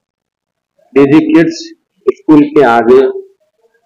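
A man speaks calmly and loudly into microphones close by.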